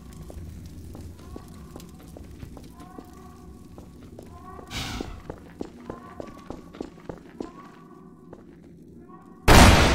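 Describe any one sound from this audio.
Footsteps tread on a hard floor in an echoing corridor.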